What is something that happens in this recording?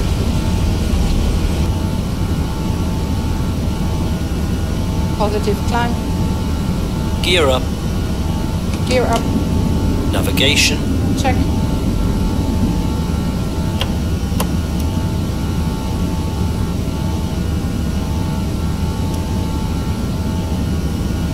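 Jet engines drone steadily with a low rumble.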